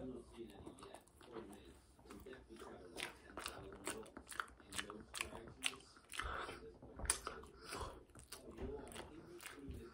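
A boy chews and smacks his lips.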